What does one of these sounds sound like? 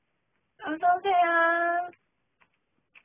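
A young woman sings a short drawn-out note close by.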